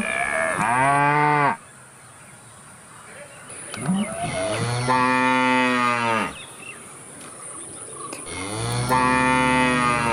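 Cows moo in long, drawn-out calls.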